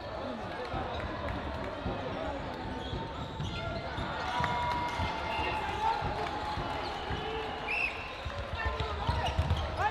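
A crowd chatters and cheers in a large echoing sports hall.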